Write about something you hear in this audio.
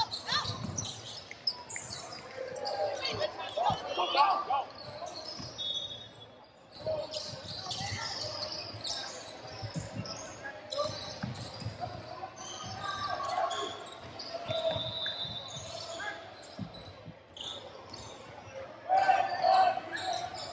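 Young players shout and call out to each other in a large echoing gym.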